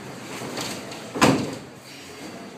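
A body thuds down onto a padded mat.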